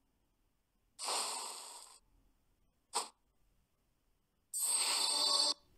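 A louder burst of game noise rushes briefly.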